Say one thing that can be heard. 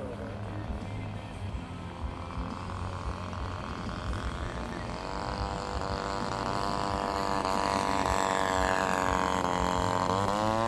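A model airplane engine whines, growing louder as it approaches and passes.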